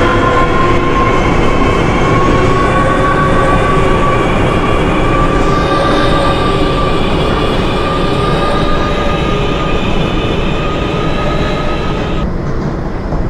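An electric train motor whines, its pitch slowly rising as the train speeds up.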